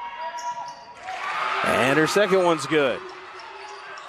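A crowd in a large echoing gym cheers loudly.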